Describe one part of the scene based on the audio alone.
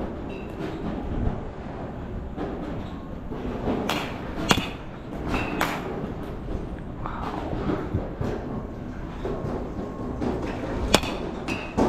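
Go-kart engines buzz and whine around a track in the distance.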